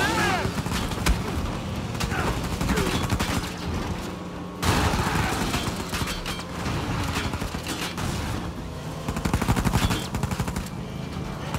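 A motorbike engine buzzes nearby.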